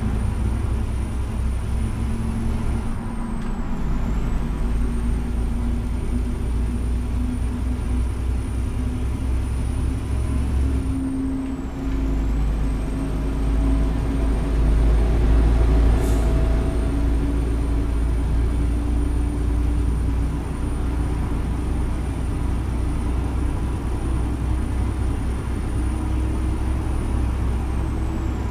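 A truck engine hums steadily from inside the cab.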